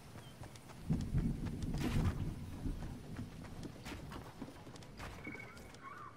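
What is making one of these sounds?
Wooden walls are built with quick clattering knocks.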